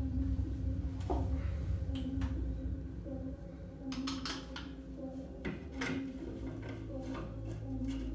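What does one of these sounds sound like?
Hands knock and scrape against a wooden board overhead.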